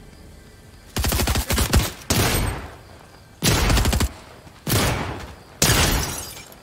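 A shotgun fires several loud booming shots.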